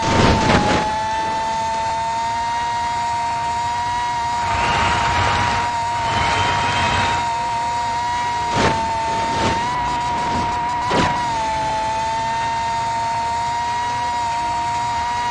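A race car engine whines at a steady high pitch.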